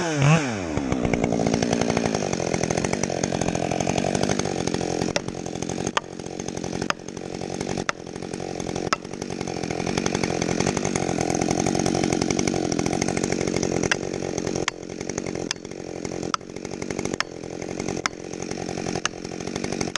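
A chainsaw idles.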